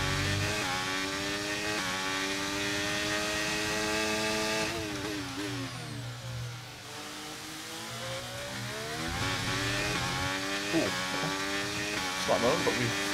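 A racing car engine whines loudly, revving up through the gears, dropping low while braking, then climbing again.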